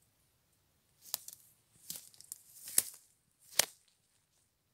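Rubber boots rustle and snap twigs on the forest floor.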